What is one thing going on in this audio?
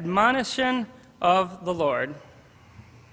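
A young man speaks through a microphone in a large hall.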